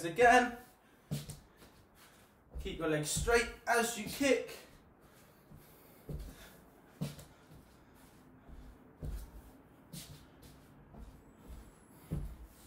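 Feet thud softly on a wooden floor.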